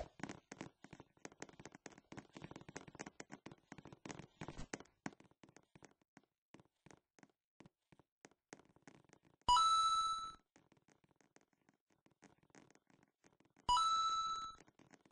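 Quick footsteps patter on grass.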